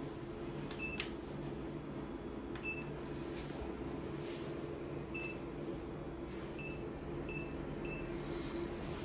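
Keypad buttons beep as they are pressed.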